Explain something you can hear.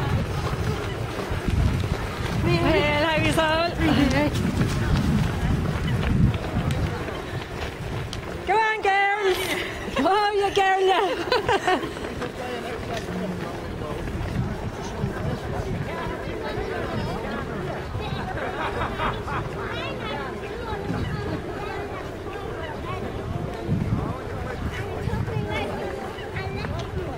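Runners' footsteps patter on a road.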